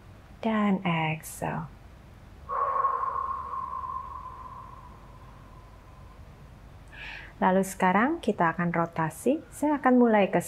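A young woman speaks calmly and softly into a close microphone.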